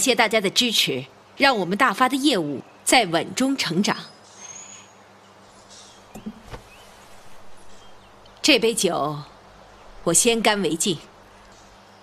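A middle-aged woman speaks warmly and calmly, close by.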